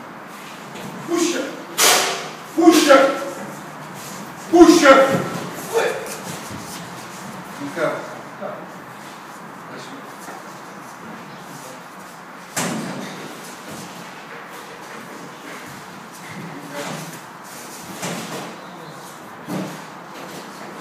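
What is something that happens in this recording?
A heavy board knocks and scrapes against stairs as it is dragged up.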